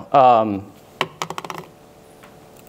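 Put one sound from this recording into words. Laptop keys click.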